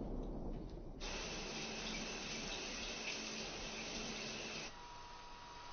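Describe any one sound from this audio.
Shower water sprays steadily.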